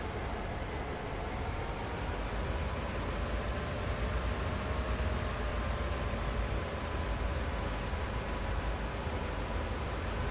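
A diesel locomotive engine rumbles and hums steadily.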